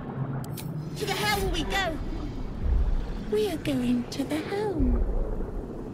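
A strange, distorted creature voice speaks in bursts.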